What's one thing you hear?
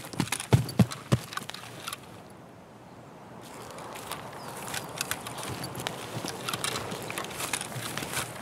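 Tall grass rustles as someone walks through it.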